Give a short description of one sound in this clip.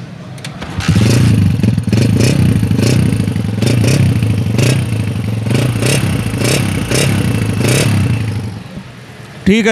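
A motorcycle engine idles with a rapid, throbbing beat close by.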